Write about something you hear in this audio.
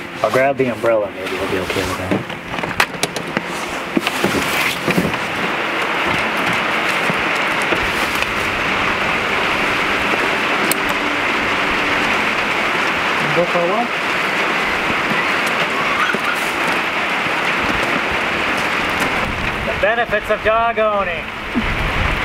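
A man speaks briefly nearby.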